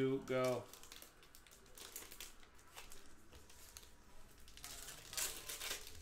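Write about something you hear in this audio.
A foil wrapper crinkles in someone's hands.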